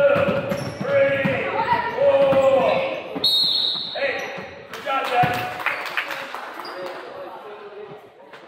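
Sneakers squeak on the wooden floor.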